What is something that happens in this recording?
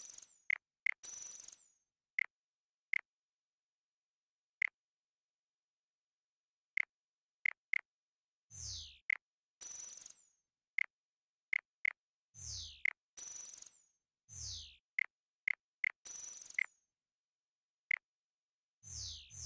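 Soft whooshing menu sounds swell and fade as pages open and close.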